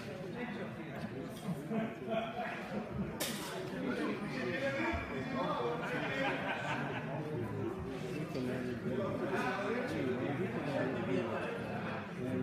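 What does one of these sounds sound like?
Several elderly men talk and chat nearby, in a large echoing hall.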